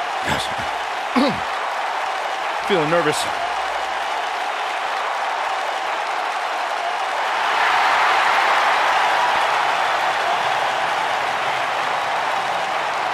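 A large crowd cheers steadily in a big arena, swelling louder midway.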